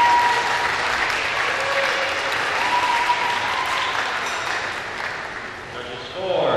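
Water splashes as a swimmer moves through a pool.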